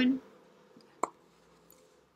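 A plastic pen is set down on paper with a light tap.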